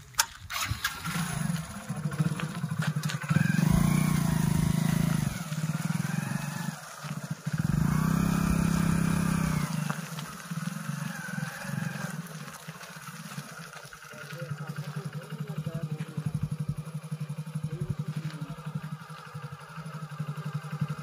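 A motorcycle engine starts up and idles with a low rumble, revving now and then.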